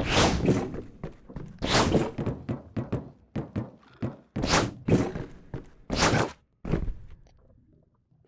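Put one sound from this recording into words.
Heavy metal containers crash and clang together in bursts.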